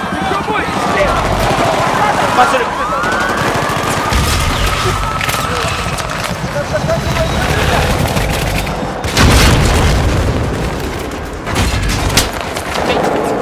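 Heavy booms rumble and echo.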